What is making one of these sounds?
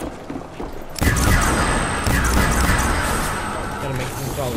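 A weapon fires rapid electric blasts.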